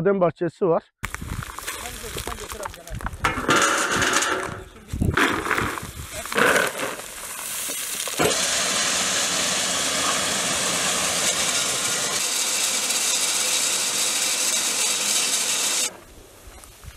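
A machine whirs and rattles steadily as it husks nuts.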